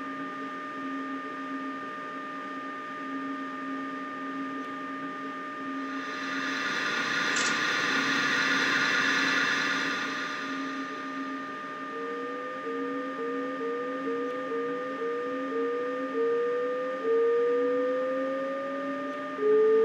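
Train wheels rumble on the rails.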